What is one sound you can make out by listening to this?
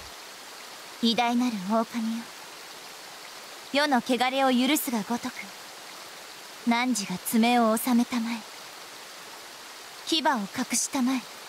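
A young woman speaks softly and solemnly.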